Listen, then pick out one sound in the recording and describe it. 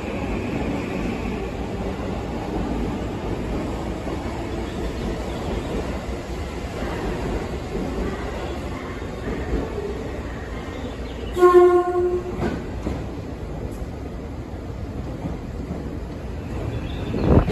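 A train rumbles and hums steadily at a platform.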